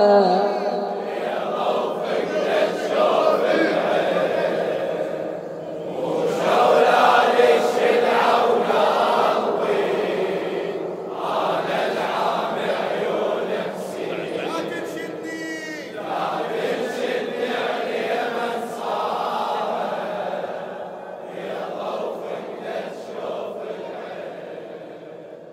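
A crowd of men chants together in reply.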